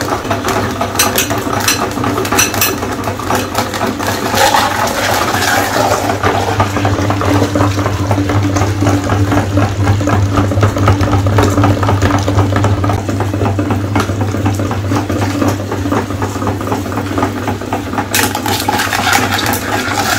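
A hand-cranked grinder crunches and cracks plastic eggs.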